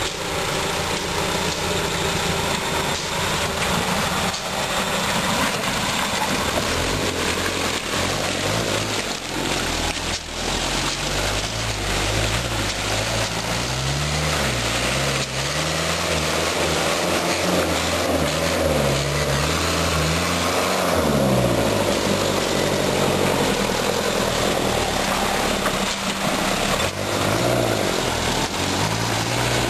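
An off-road vehicle's engine labours and revs, rising and falling as it climbs.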